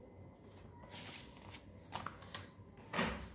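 A notebook page rustles as it is turned.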